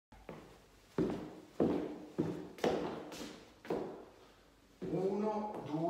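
Boots stomp and scuff on a wooden floor in an echoing room.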